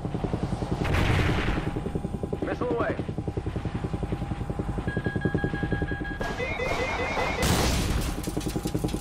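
A missile launches with a loud whoosh.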